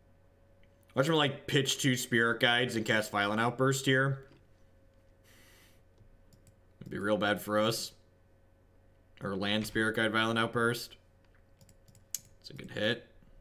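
A young man talks calmly into a close microphone, in bursts with pauses.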